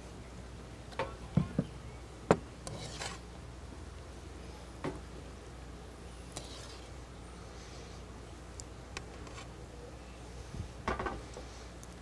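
A metal spoon clinks and scrapes against a pan.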